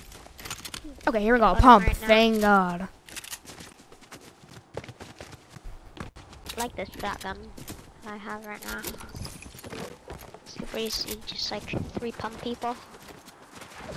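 A young man talks excitedly into a headset microphone, heard close.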